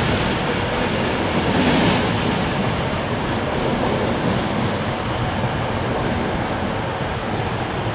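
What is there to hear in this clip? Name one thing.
A diesel train engine idles steadily.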